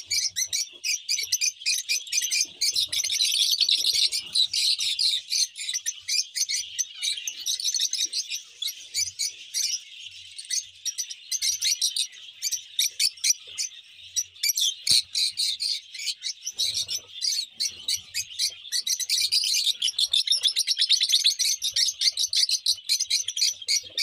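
Many small parrots chirp and screech loudly all together.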